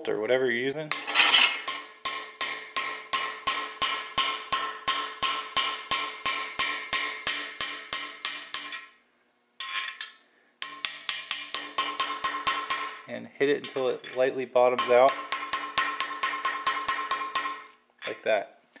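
A hammer taps rapidly on a metal pin, ringing with each blow.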